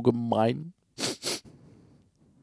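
A game menu gives short clicks.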